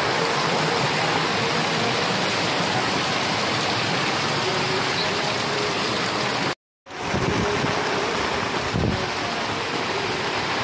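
Rain pours down steadily outdoors.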